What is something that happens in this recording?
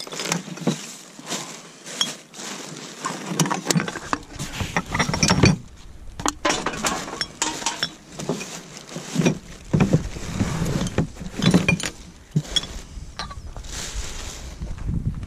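Plastic bags and paper rustle as gloved hands rummage through a bin.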